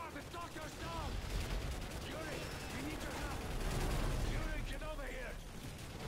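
Explosions rumble low and heavily.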